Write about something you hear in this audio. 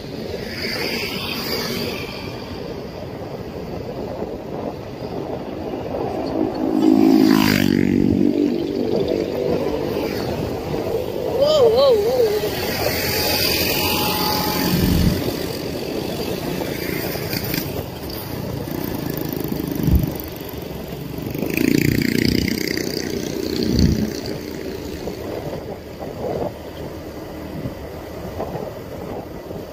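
Wind rushes past.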